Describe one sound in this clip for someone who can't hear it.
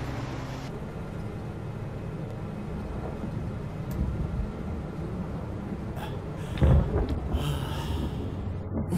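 A car engine hums low and steady as the car drives along.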